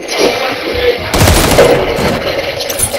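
An assault rifle fires a burst of shots.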